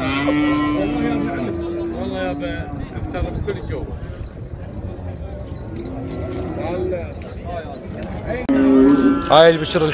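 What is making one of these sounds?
A crowd of men talk all around outdoors.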